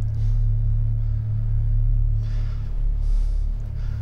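A man drops down onto a leather sofa with a soft creak.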